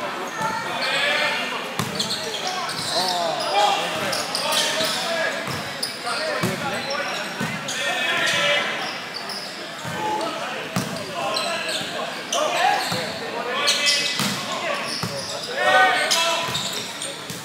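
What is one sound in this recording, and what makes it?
Young men shout and call out across a large echoing gym.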